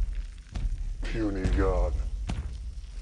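A large creature grunts deeply.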